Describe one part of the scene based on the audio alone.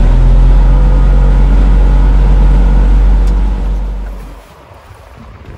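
A boat engine drones loudly, then slows and quiets down.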